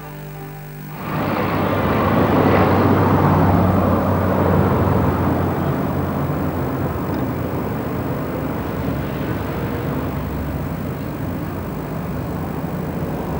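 A bus drives past.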